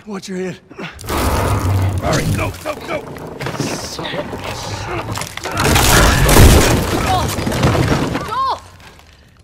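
Wooden beams and debris crash and rumble loudly.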